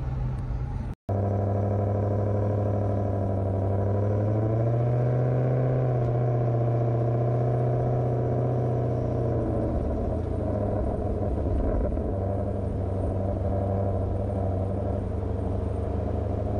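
Tyres roll along a paved road.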